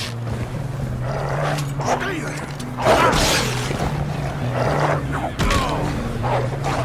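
A wolf snarls and growls fiercely up close.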